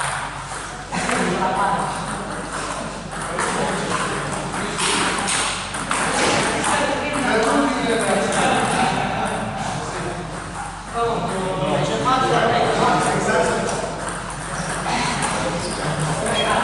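A table tennis ball clicks back and forth on a table and paddles.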